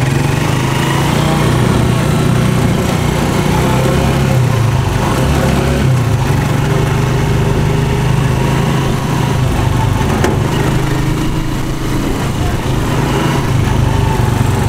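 A small motor engine drones steadily up close.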